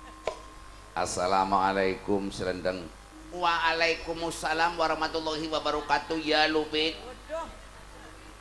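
A man speaks in an animated, theatrical voice over a loudspeaker.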